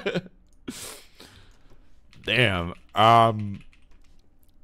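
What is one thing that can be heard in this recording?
A man speaks loudly and with animation close to a microphone, drawing out his words.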